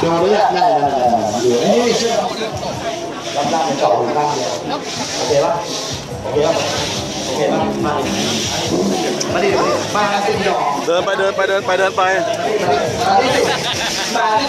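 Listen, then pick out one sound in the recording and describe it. A man shouts with animation into a microphone, heard through loudspeakers.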